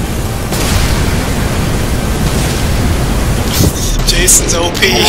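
Energy beams crackle and roar.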